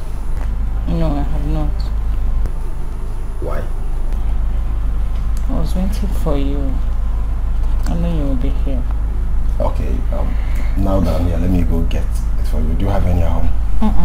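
A woman speaks softly and emotionally close by.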